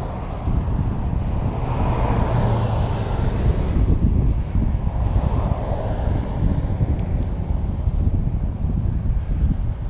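Wind rumbles loudly against a microphone outdoors.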